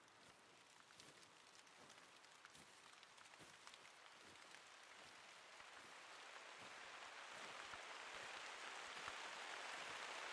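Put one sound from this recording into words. Wind blows steadily outdoors and slowly grows louder.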